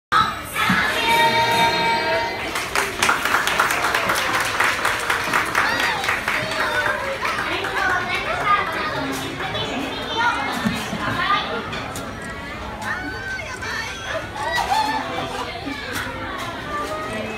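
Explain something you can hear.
Diners chatter in a busy, lively room.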